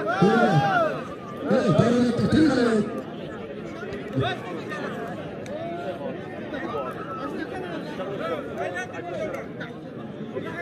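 A crowd murmurs and chatters in the open air.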